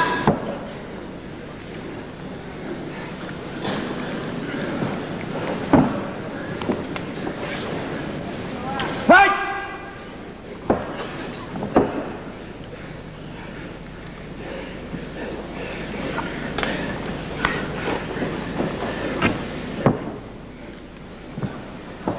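Wrestlers' bodies thump and slap on the ring mat.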